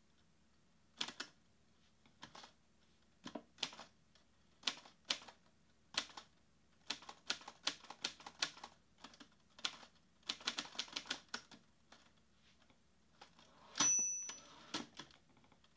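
Fingers tap quickly on a laptop keyboard in uneven bursts.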